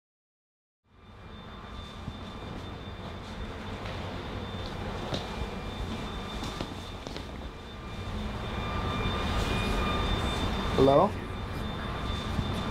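A phone plays soft electronic game sounds.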